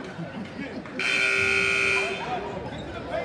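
A buzzer sounds loudly for about a second.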